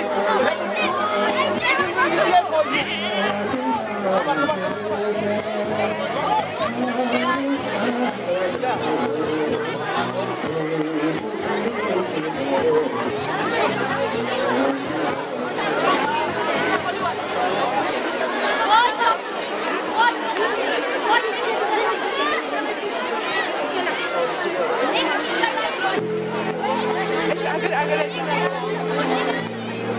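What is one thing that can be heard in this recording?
A large crowd of children chatters loudly all around, close by.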